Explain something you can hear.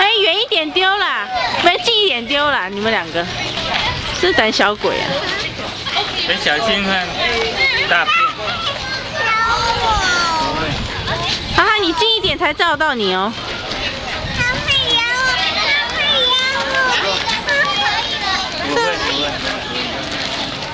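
Young children chatter and shout excitedly nearby.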